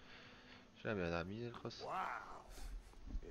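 A young man exclaims with surprise.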